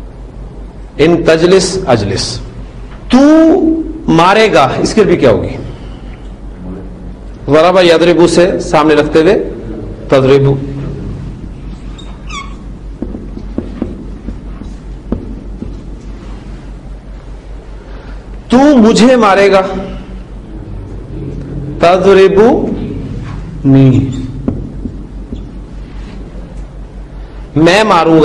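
A man lectures calmly and clearly, with pauses, close by.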